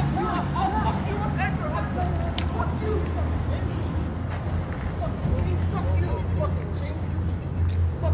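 Young men shout excitedly nearby.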